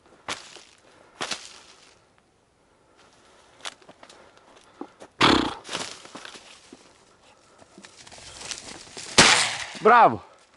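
A dog rustles through dry crop stalks close by.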